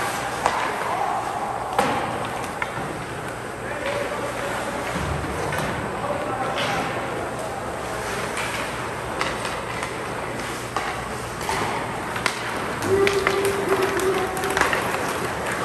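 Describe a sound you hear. Hockey sticks clack sharply against the puck and ice.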